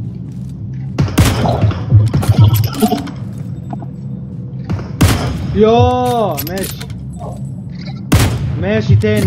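A rifle fires single loud shots that echo briefly.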